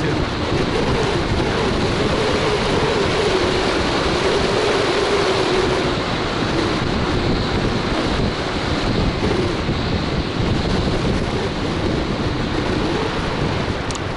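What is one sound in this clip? A scooter's motor hums softly.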